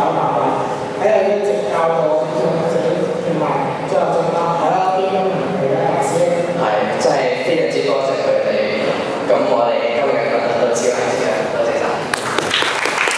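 A teenage boy speaks calmly through a microphone in an echoing hall.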